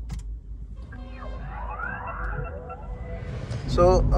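A car engine starts and revs up.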